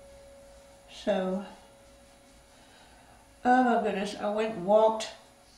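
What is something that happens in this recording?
A middle-aged woman speaks calmly and close by.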